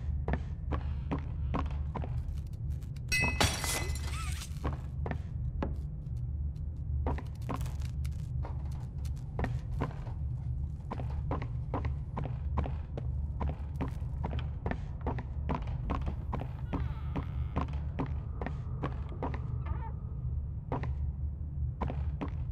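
Footsteps thud steadily across a wooden floor.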